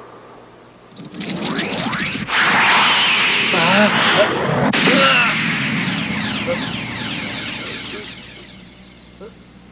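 A loud rushing whoosh sweeps past and slowly fades.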